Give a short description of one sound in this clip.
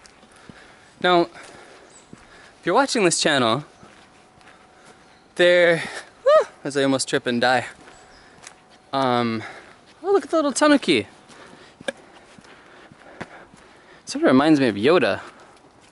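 A young man talks with animation close to the microphone, outdoors.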